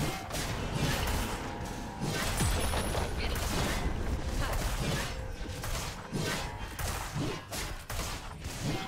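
Video game spell effects whoosh, crackle and thud during a fight.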